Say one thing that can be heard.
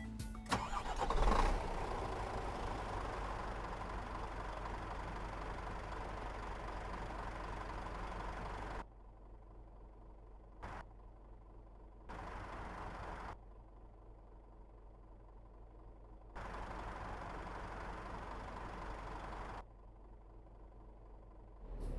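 A truck engine idles with a steady low rumble.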